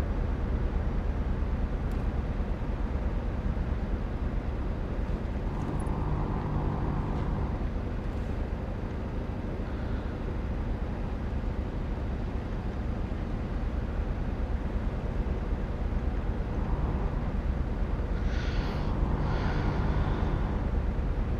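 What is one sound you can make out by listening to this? A diesel semi truck engine drones while cruising at highway speed.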